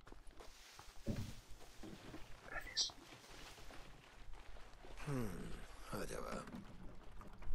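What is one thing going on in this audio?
A young man talks casually into a close microphone.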